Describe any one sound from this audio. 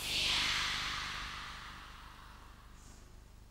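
A large children's choir sings in an echoing hall, then fades away.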